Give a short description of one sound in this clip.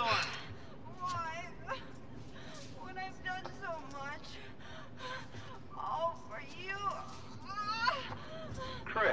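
A woman speaks in a strained, emotional voice, close up.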